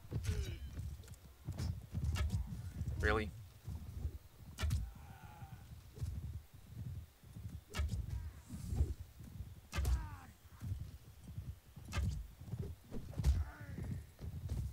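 Horses gallop with thudding hooves.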